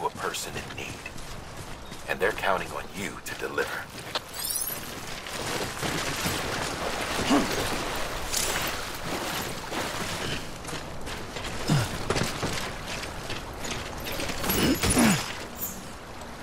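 Footsteps crunch over grass and rocks.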